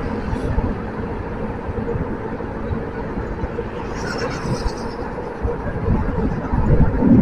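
Motorcycle engines hum steadily close by.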